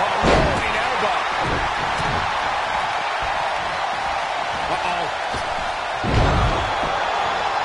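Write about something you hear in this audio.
Heavy thuds of bodies hitting a wrestling mat land now and then.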